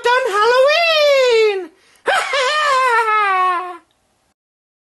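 A witch toy wails in a high, sliding voice.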